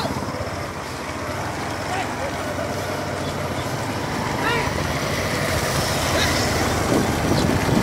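A motorcycle engine grows louder as it approaches.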